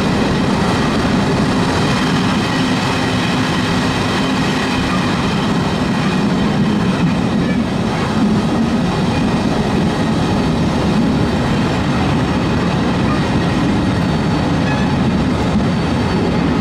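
A train rumbles loudly and steadily along the track.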